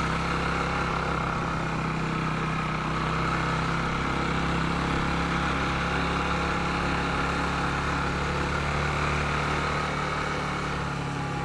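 A small motorcycle engine hums steadily up close.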